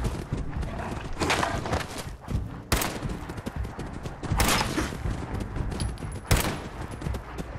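Dogs snarl and growl close by.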